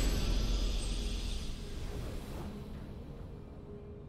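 A triumphant victory fanfare plays and fades out.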